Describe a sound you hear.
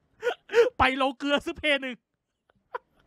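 A young man cries out and wails into a microphone.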